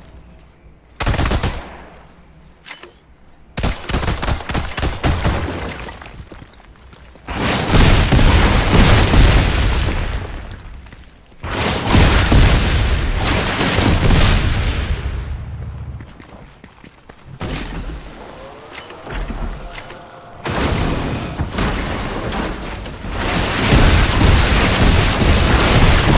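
Gunfire bursts rapidly, close by.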